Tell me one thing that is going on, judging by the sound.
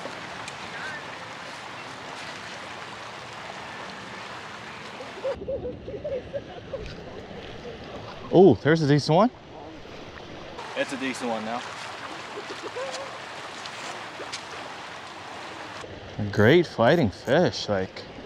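A river rushes and splashes steadily outdoors.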